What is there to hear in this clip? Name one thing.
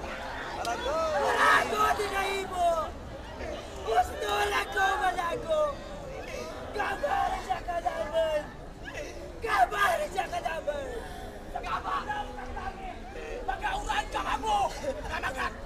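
A man speaks loudly and with animation through a loudspeaker, echoing outdoors.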